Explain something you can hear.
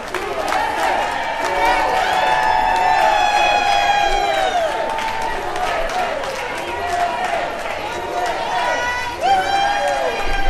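A crowd claps steadily.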